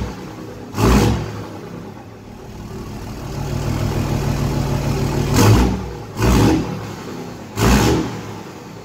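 An exhaust bangs loudly a few times.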